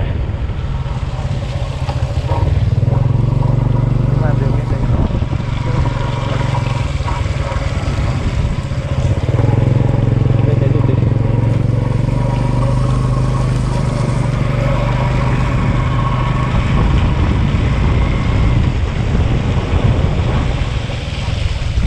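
Tyres squelch and rumble over a muddy track.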